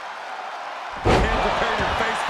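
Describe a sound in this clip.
A body slams hard onto a wrestling mat with a loud thud.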